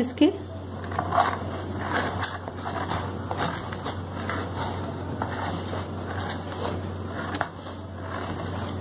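A metal tin knocks and scrapes against a wooden board.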